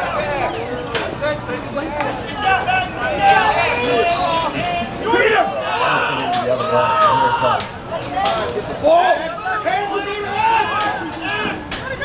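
Lacrosse sticks clack against each other.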